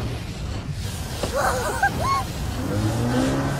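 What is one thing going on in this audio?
A young woman exclaims excitedly.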